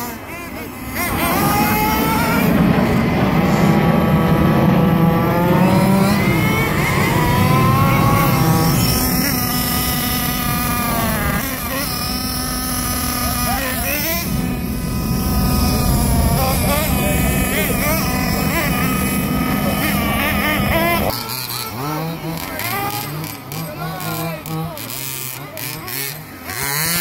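A small electric motor of a toy car whines and revs up and down.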